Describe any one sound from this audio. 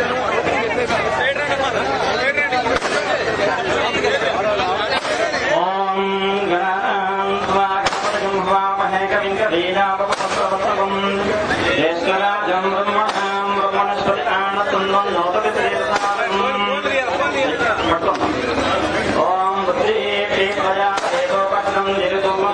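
A large crowd of men and women chatters and shouts loudly outdoors.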